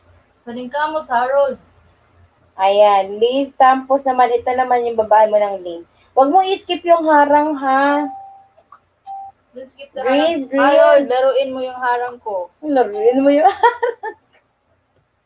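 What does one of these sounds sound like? A woman sings close to a microphone, heard through an online call.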